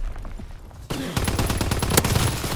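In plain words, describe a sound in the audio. A rifle fires rapid loud shots.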